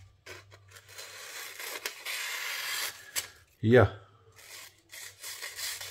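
A knife blade slices through glossy paper.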